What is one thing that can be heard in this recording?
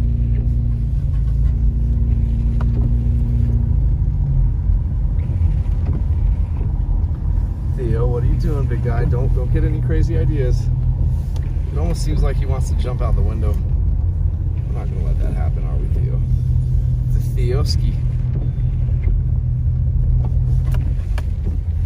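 A car engine hums low and steady while driving.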